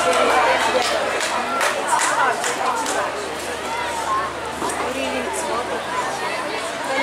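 A crowd of young girls chants and shouts together outdoors.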